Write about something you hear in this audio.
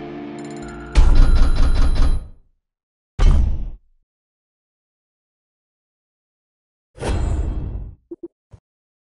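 Game menu sounds whoosh and chime.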